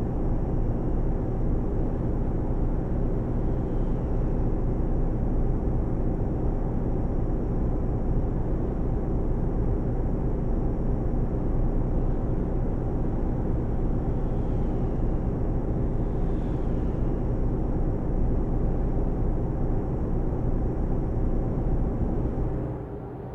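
Tyres rumble on a wet road.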